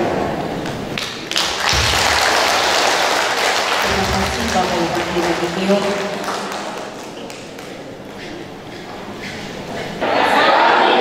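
A crowd of people chatters softly in a large echoing hall.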